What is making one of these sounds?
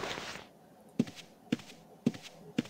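Footsteps thud at a slow, even pace.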